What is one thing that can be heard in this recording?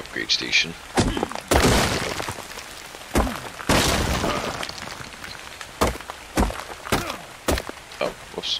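A pickaxe strikes rock with sharp, repeated knocks.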